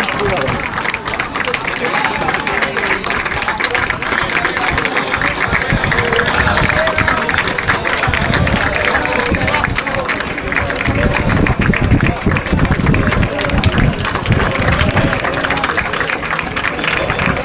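A group of young men chant and shout together outdoors.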